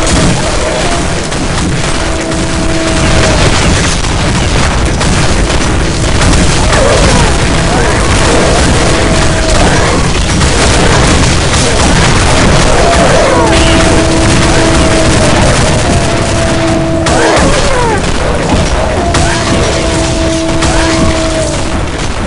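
A heavy blade slashes and strikes repeatedly.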